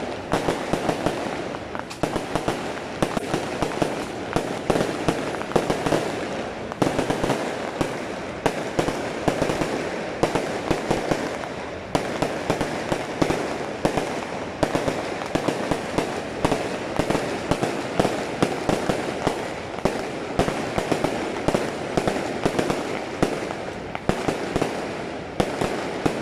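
Fireworks crackle and bang in rapid bursts close by.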